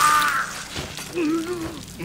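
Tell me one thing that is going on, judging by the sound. Flesh tears with a wet slash.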